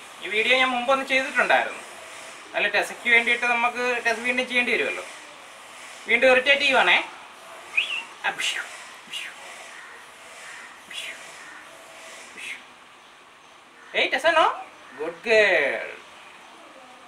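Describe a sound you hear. A puppy whimpers and yelps close by.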